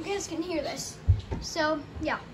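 A cartoon ball thuds as it bounces, heard through a television speaker in a room.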